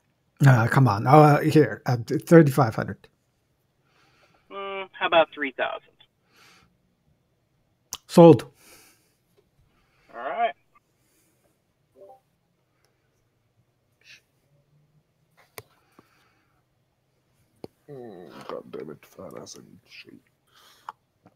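Several men talk with animation over an online call.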